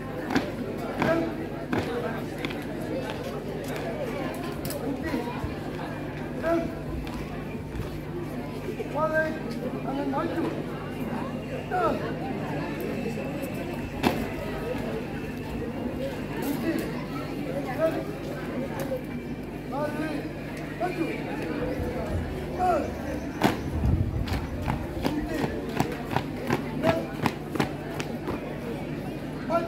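Boots stamp in step as a group marches outdoors.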